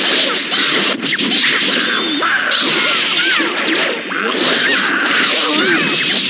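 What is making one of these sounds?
Electric attack effects crackle and buzz in rapid bursts.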